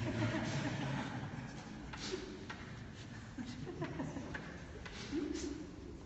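A woman laughs softly nearby.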